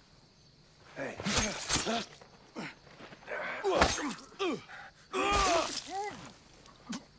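A large animal growls and snarls close by.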